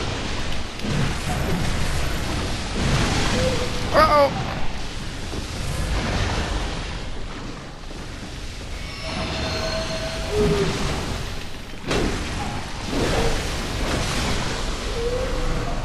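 A blade slashes and strikes repeatedly.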